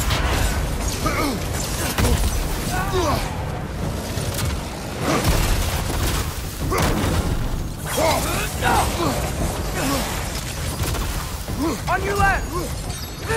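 Creatures shriek and growl.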